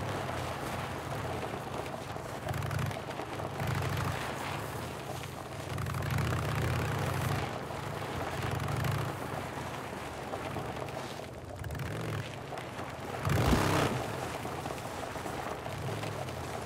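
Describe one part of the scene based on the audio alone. A motorcycle engine hums steadily and revs up and down.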